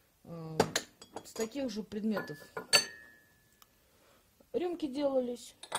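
Porcelain cups clink softly as they are picked up.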